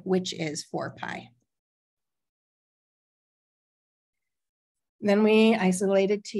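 A woman speaks calmly through a microphone, explaining.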